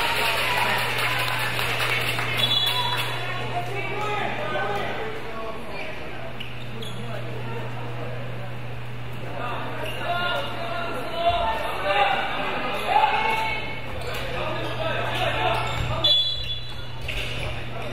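Children shout in a large echoing hall.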